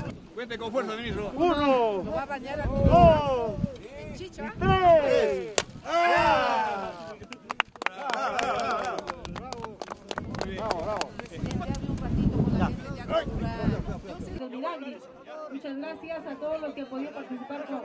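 A crowd of men and women shouts and cheers loudly nearby.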